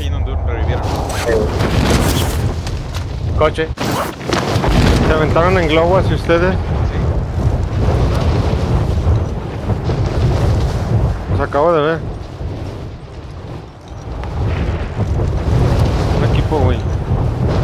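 Wind rushes loudly and steadily, as in a fast fall through the air.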